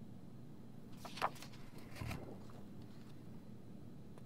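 Pages of a sketchbook rustle as they are flipped.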